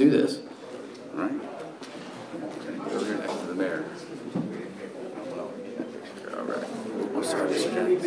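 A man speaks calmly into a microphone over a loudspeaker.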